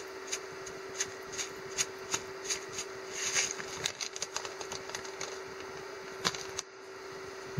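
A shaker rattles as seasoning is sprinkled out.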